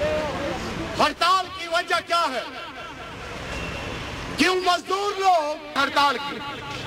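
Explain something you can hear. A man speaks loudly and forcefully into a microphone, outdoors.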